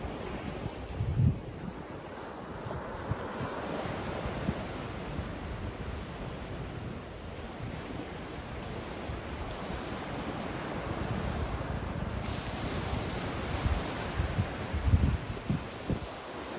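Ocean waves wash onto a beach.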